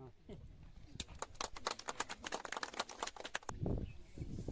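A small crowd claps hands outdoors.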